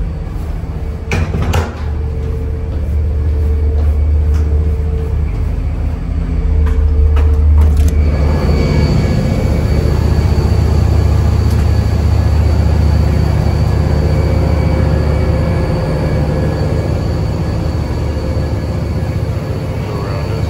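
A ship's engine hums low and steady throughout.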